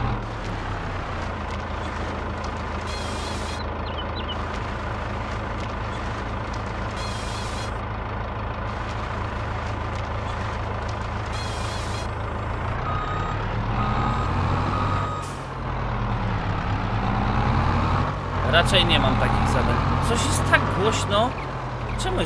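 Hydraulics whine as a crane arm moves.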